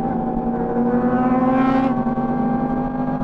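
Another motorcycle passes close by.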